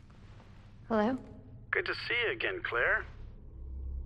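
A young woman speaks quietly and hesitantly.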